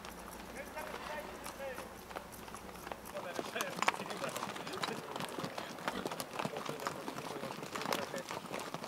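Horse hooves clop on a gravel path.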